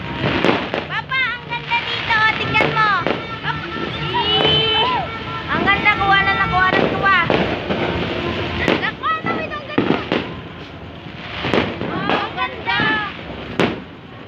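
Whistling fireworks shriek, their pitch wavering and falling.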